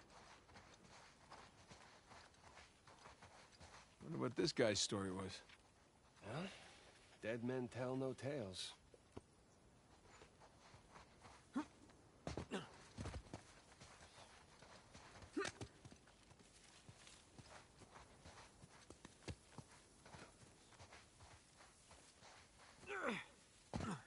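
A man's footsteps crunch quickly over sand and grass.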